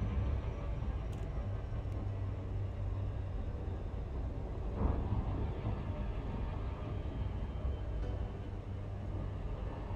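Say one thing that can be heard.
A deep, steady engine hum rumbles throughout.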